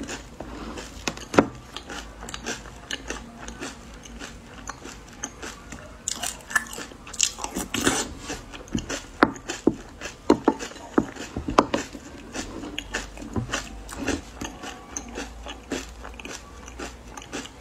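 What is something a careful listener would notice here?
A young woman chews food wetly and smacks her lips close up.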